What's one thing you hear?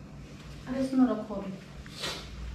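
A young woman talks on a phone nearby.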